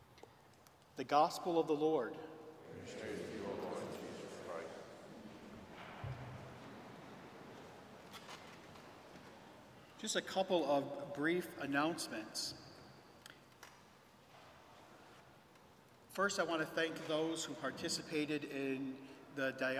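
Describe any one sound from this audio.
A man speaks through a microphone in a large echoing hall, reading out slowly.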